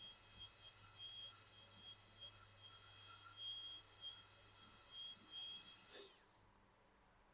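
A high-pitched dental drill whines steadily.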